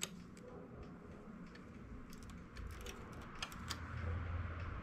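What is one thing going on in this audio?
A metal tool clicks lightly against the needles of a knitting machine.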